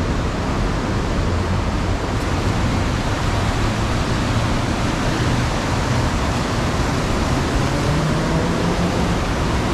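A mountain stream rushes steadily over rocks nearby.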